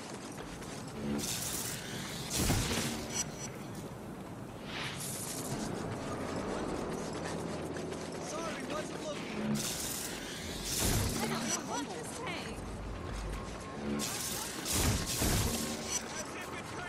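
Electric energy crackles and bursts in loud blasts.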